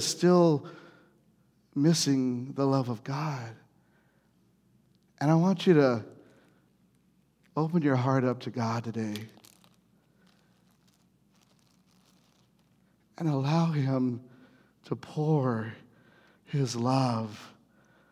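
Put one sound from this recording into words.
A man speaks with animation through a microphone in a large room, pausing between phrases.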